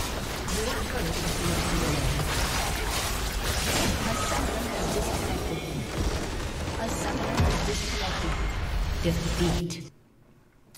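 Loud video game battle sounds clash and boom with music.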